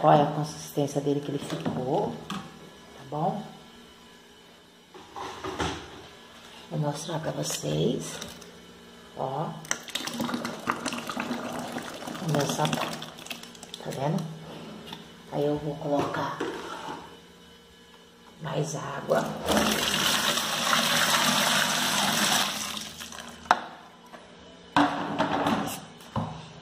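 A wooden pole stirs and sloshes liquid in a plastic bin.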